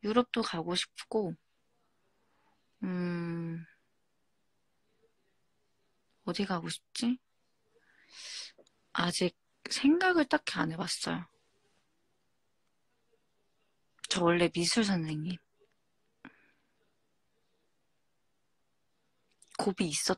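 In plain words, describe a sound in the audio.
A young woman speaks softly and playfully, close up.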